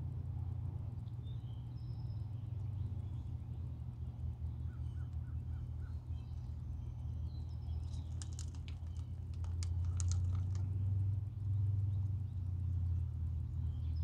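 Wind rumbles steadily across an open outdoor spot.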